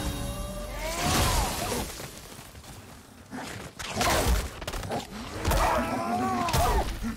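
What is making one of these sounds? A beast snarls and roars.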